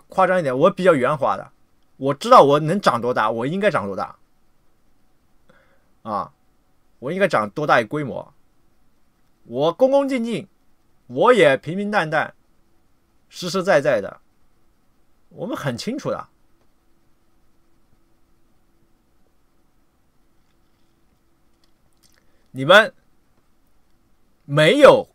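A young man speaks calmly into a nearby microphone, in short bursts with pauses.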